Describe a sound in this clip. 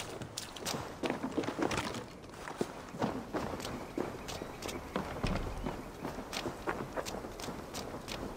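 Footsteps crunch on dirt and wooden boards.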